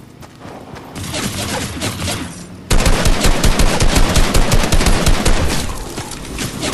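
Rapid gunfire from an assault rifle rattles in quick bursts.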